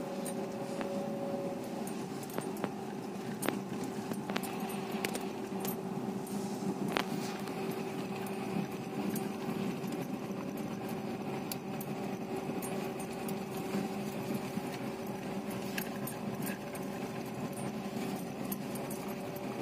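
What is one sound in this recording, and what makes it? A car engine hums steadily at low speed.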